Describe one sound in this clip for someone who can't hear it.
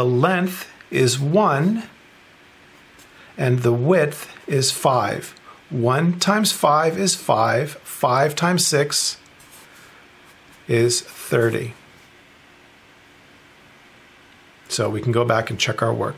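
A felt marker squeaks and scratches on paper.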